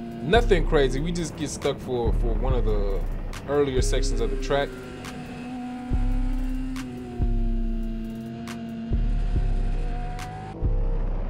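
A motorcycle engine roars close by, rising and falling in pitch.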